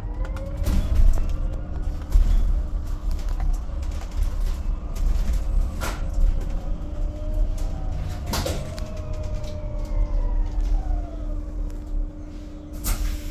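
Loose parts inside a bus rattle and knock now and then.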